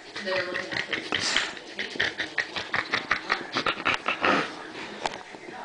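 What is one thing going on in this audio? A baby laughs and squeals close by.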